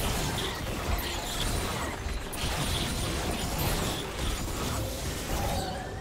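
Spell effects burst and crackle in a fast game fight.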